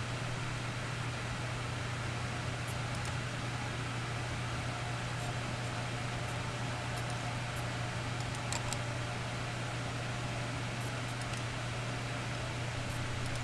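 An electrical panel hums steadily and low.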